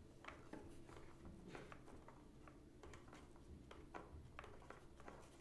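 Hands twist a plastic bolt into a cardboard box, with small clicks and scrapes.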